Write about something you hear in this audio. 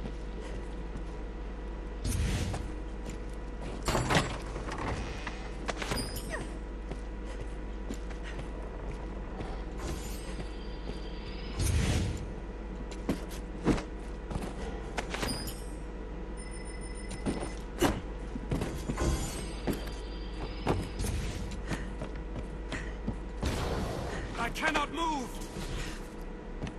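Footsteps thud and scuff along stone and wooden floors.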